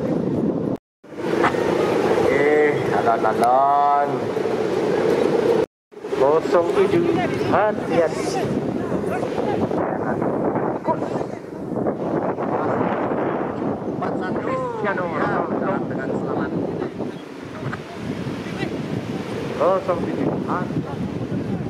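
Ocean waves crash and roar on a shore.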